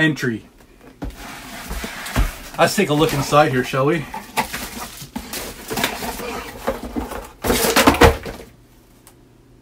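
Cardboard and plastic wrapping rustle as a box is opened.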